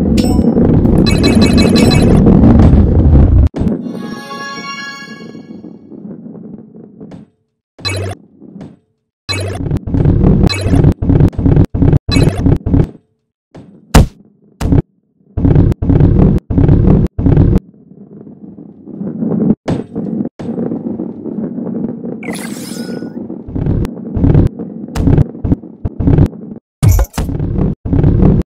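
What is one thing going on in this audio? A ball rolls and rumbles along a track.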